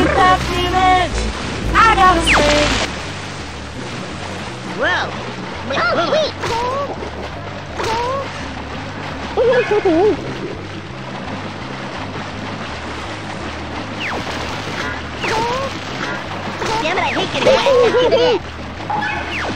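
Cartoonish game sound effects chirp and squeak now and then.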